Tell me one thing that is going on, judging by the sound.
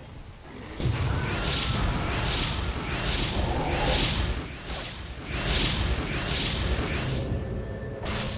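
Sharp swishing blade sounds whirl in quick repeated bursts.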